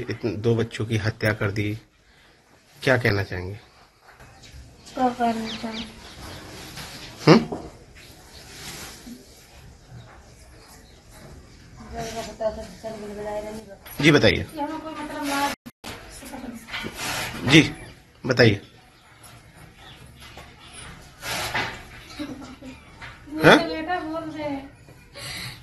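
A woman speaks close to a microphone.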